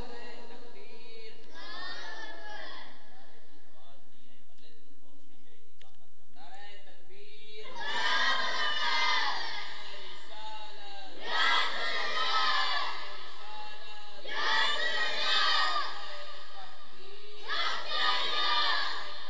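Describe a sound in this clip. A man recites loudly and with passion into a microphone, heard through loudspeakers in a reverberant space.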